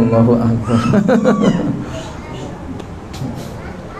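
A man laughs into a microphone.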